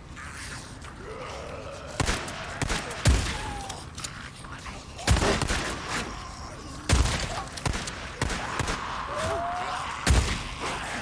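A creature snarls and groans.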